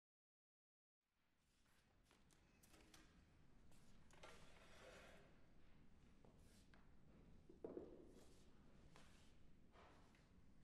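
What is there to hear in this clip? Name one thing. Footsteps and soft knocks sound on a stage in a large, echoing hall.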